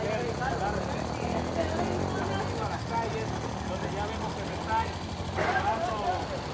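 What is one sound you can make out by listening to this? A motorcycle engine idles nearby.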